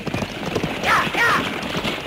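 Wagon wheels rattle over the ground.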